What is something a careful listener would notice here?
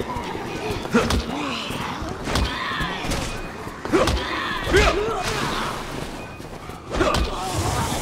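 Heavy blows thud during a close scuffle.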